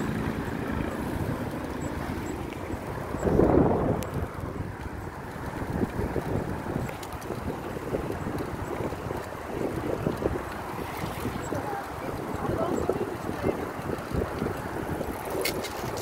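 Wind rushes steadily past outdoors, with a stronger gust.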